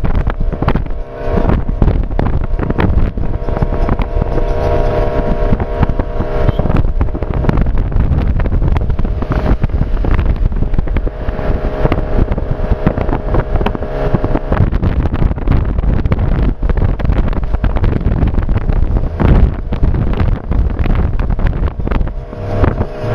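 A vehicle engine hums steadily as it drives along a road.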